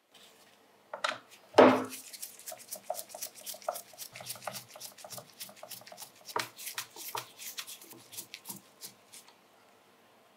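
A screwdriver clicks and scrapes as it turns a screw in metal.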